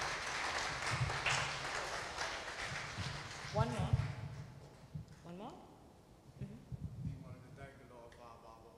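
A woman speaks into a microphone in a large echoing hall.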